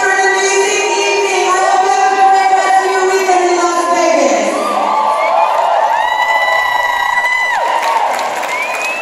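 An audience cheers and screams loudly in a large hall.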